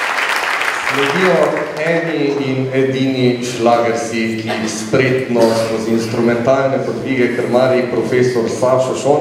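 A girls' choir sings together in a large echoing hall.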